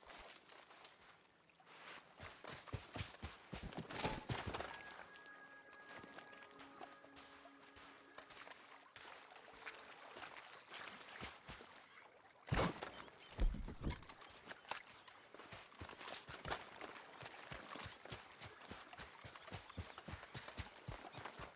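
Footsteps crunch on sand and gravel.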